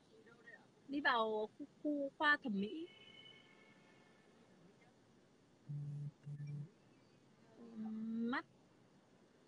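A young child answers in a high voice.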